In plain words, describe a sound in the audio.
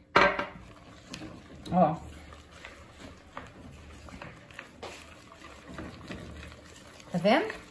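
A hand squishes and mixes wet dough in a bowl.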